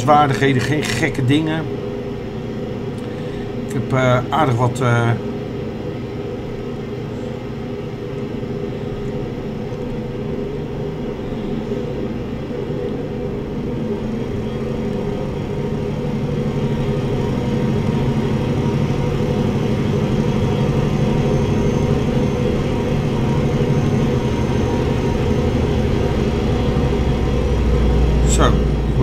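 A truck engine hums steadily and grows louder.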